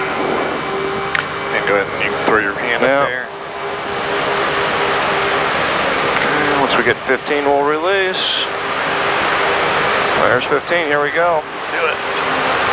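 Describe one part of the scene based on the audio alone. An aircraft engine roars steadily from inside the cockpit.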